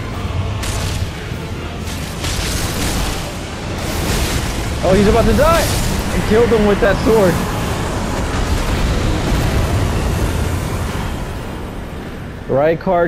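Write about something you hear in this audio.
A huge beast roars and rumbles deeply.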